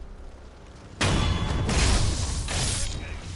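Swords clash loudly.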